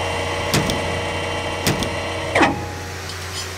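Heavy metal clanks sound sharply a few times.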